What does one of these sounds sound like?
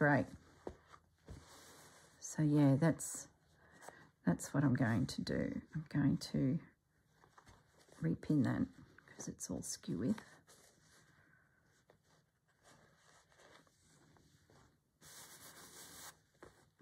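Fabric rustles softly as hands handle and smooth it.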